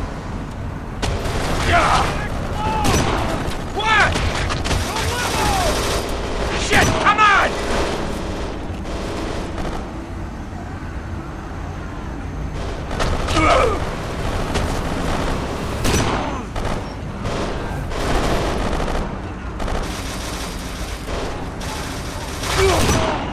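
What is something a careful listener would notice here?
Pistol shots crack sharply, one after another.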